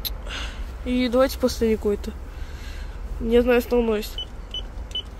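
An intercom plays a short electronic tune.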